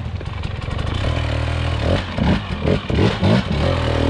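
A dirt bike engine revs up and down in short bursts close by.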